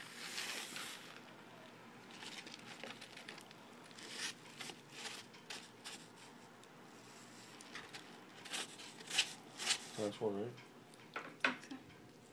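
A lizard's claws scratch and scrape on a plastic tub.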